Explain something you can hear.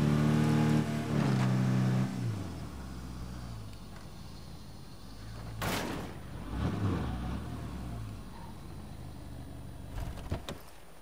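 A vehicle engine rumbles and revs as it drives slowly.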